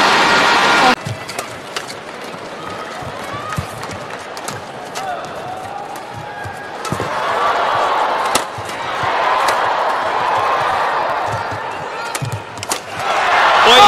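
Shuttlecock hits crack sharply from rackets in a quick rally.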